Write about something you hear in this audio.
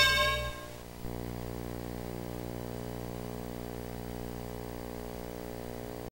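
Electronic arcade game music plays steadily.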